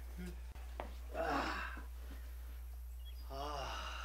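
A man grunts as he drops into a hammock.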